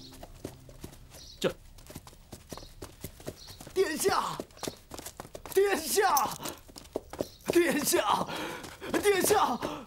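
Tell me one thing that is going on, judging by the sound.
A horse's hooves clop slowly on the ground.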